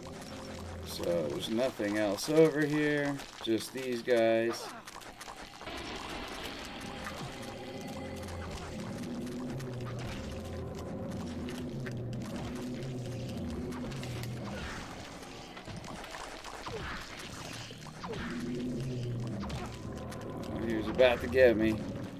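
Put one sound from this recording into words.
Monsters screech and snarl during a fight.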